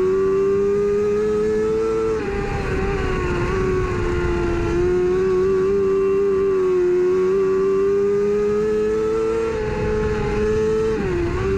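A race car engine roars loudly at high revs, its pitch rising and falling through the turns.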